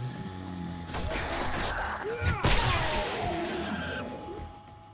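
A zombie growls and groans.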